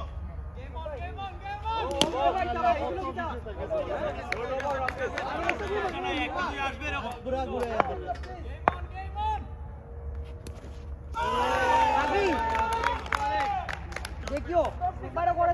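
Men shout and cheer with animation outdoors.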